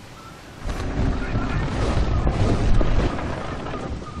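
A cannon fires with a deep boom.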